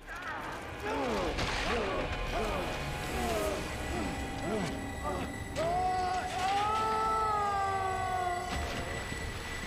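A monster roars and snarls loudly.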